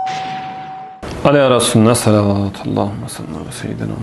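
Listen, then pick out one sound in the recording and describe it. A middle-aged man reads aloud calmly into a microphone.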